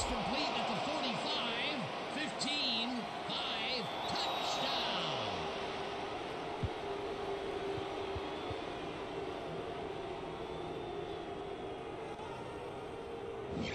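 A large crowd cheers and murmurs steadily.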